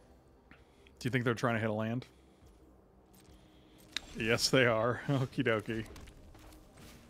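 A man speaks into a close microphone with animation.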